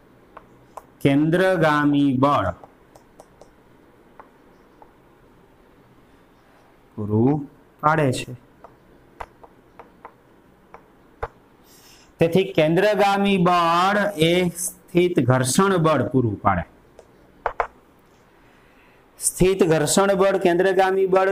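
A man speaks calmly and clearly in short bursts, like a teacher explaining.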